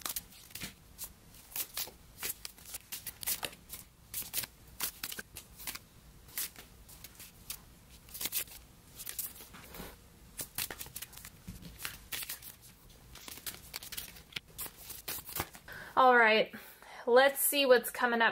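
Cards tap softly as they are laid down on a table.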